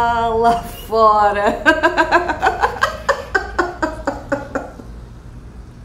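A middle-aged woman laughs heartily.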